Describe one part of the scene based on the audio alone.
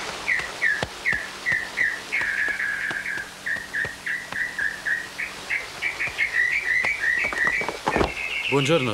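A horse's hooves thud on soft ground at a walk.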